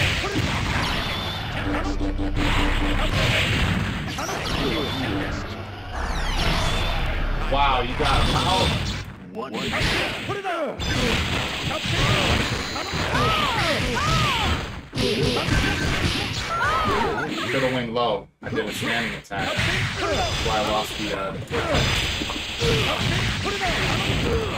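Energy blasts and punches crash and whoosh rapidly.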